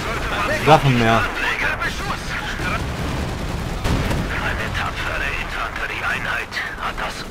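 Gunfire rattles.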